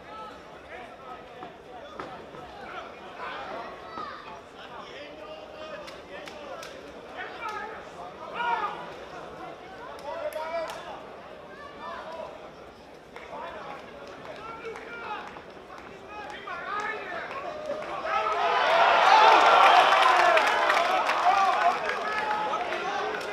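A crowd of spectators shouts and cheers in a large hall, swelling loudly near the end.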